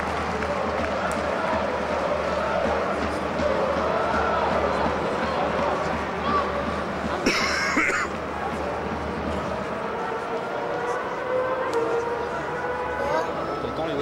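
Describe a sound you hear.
A large crowd murmurs and chatters steadily.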